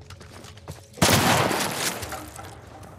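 A shotgun fires once with a loud blast that echoes away.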